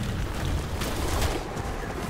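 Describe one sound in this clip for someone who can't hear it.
A pickaxe swings through the air with a whoosh.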